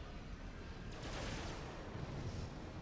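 A laser beam fires with a hissing whoosh.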